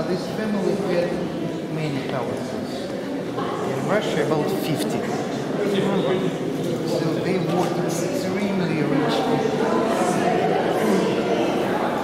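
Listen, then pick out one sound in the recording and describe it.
A crowd of men and women talks in a murmur, echoing in a large hall.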